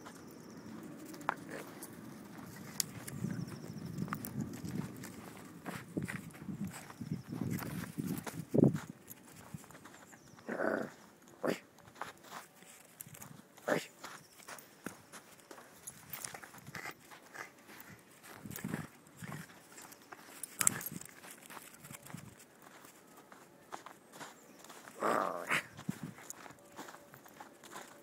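A twig scrapes and rustles over snow.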